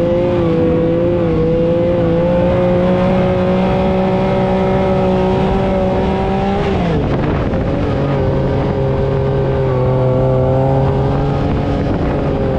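Wind rushes past an open vehicle.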